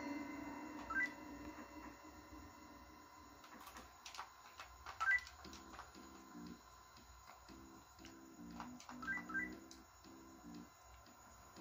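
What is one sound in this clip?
Short electronic menu beeps sound from a television speaker.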